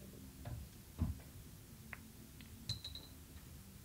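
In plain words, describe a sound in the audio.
Billiard balls strike and click against each other.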